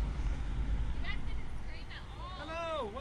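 A teenage girl shrieks with high, wavering screams close by.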